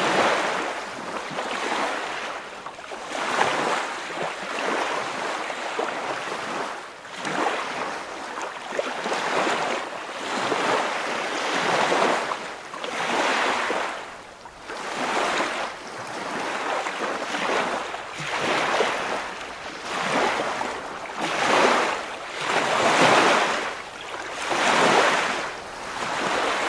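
River water rushes and burbles over shallow rocks close by.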